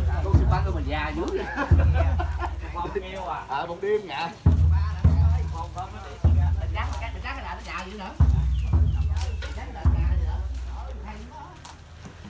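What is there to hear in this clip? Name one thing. Men and women talk quietly nearby.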